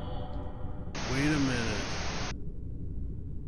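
Static hisses in a loud burst.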